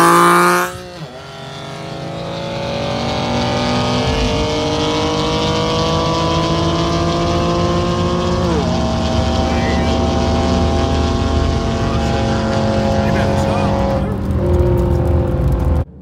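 A car engine roars as it accelerates away, shifting gears.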